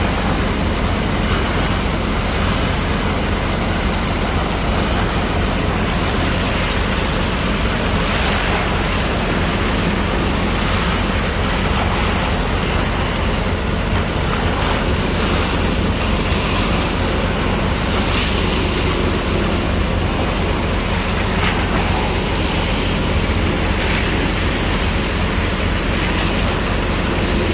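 A high-pressure water jet sprays and splashes into muddy water.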